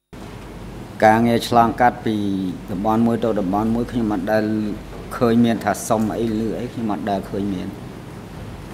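An elderly man speaks slowly into a microphone.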